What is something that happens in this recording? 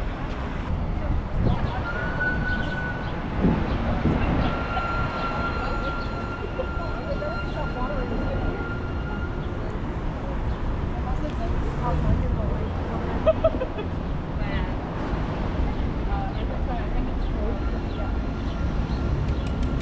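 Traffic rumbles along a busy city street outdoors.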